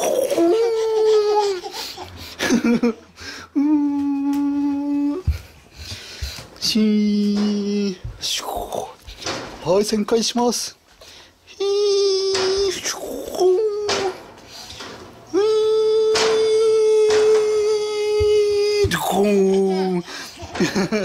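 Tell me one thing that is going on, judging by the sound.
A baby laughs and squeals gleefully close by.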